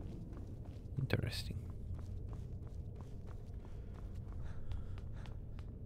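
Footsteps tread on stone floor.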